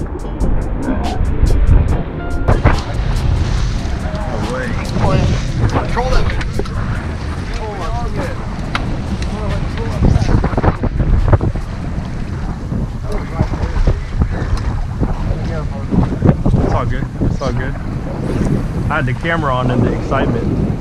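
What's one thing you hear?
Waves slap against a boat's hull.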